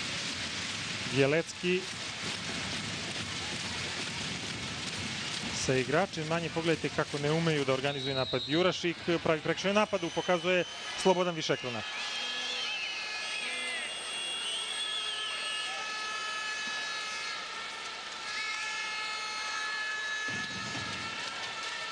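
A large crowd cheers and chants in a big echoing hall.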